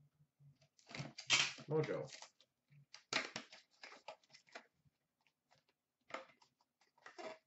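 Cardboard packaging rustles and scrapes as hands open a box.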